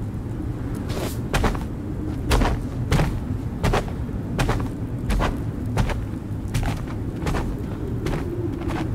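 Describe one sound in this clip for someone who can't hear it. Footsteps crunch slowly on the forest floor.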